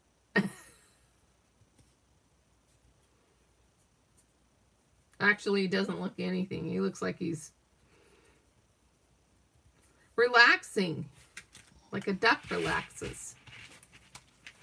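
Paper rustles softly as hands handle it.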